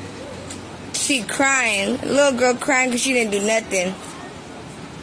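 A woman cries out loudly in a high, upset voice.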